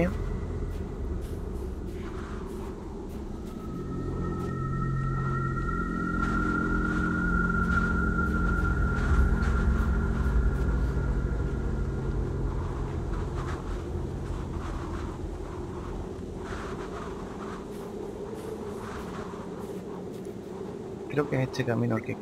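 Wind howls steadily outdoors.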